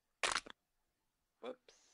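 Keypad buttons beep as they are pressed.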